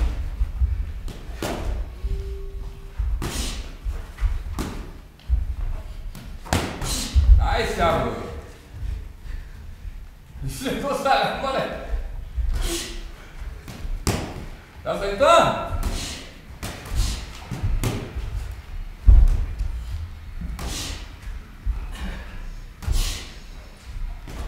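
Feet shuffle and thump on a padded floor.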